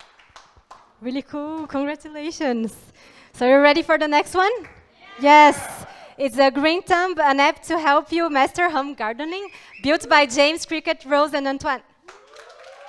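A young woman speaks clearly through a microphone.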